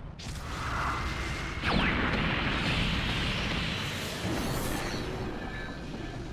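Spacecraft engines roar steadily.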